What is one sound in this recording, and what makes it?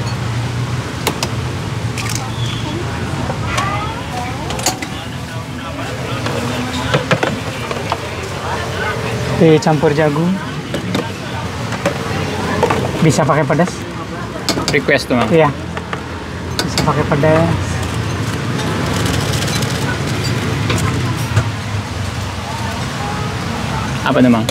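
Batter sizzles softly on a hot griddle.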